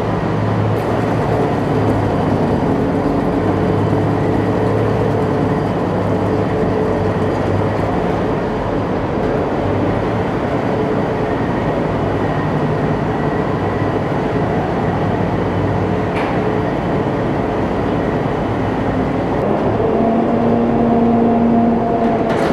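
Steel tracks of an amphibious assault vehicle clatter across a steel deck.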